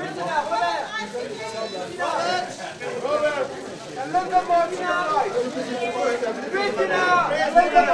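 A crowd of men call out loudly and overlap, close by.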